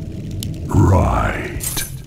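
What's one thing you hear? Magic spells crackle and burst in a fight.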